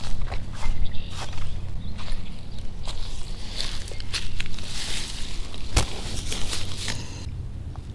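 Footsteps crunch on dry grass and brush.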